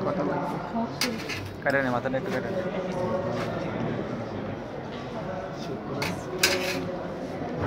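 Metal tools clink against a metal tray.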